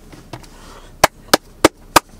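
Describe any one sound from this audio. A young man claps his hands several times quickly.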